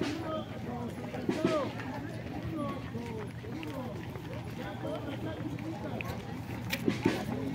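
A crowd of children chatter outdoors as they walk.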